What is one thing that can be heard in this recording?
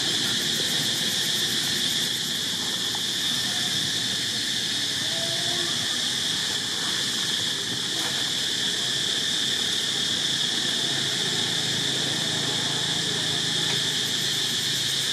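A monkey chews food with soft smacking sounds.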